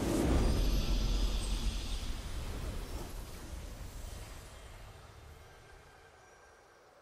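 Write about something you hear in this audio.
A triumphant game fanfare rings out and slowly fades.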